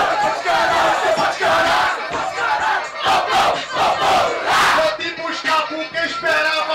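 A young man raps loudly into a microphone over a loudspeaker.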